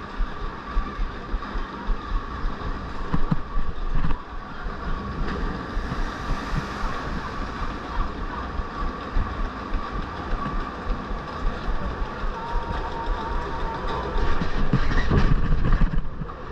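A ride boat clatters and knocks along a track.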